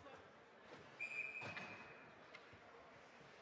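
A referee's whistle blows a short blast.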